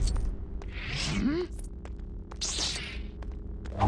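Lightsabers hum and swish.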